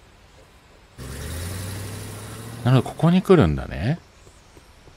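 A truck engine starts and drives away.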